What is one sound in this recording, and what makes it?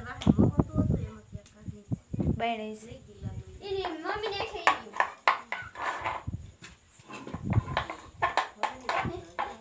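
A rolling pin thumps and rolls on a wooden board.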